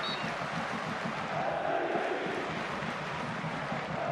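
A man argues heatedly with a referee.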